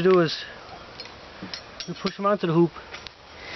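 A metal clamp clinks against a metal pole.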